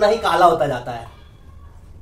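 A man talks cheerfully nearby.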